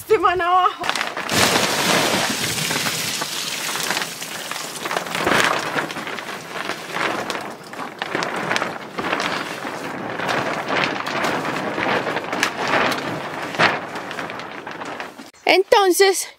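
Plastic netting rustles and crackles as it is pulled and shaken.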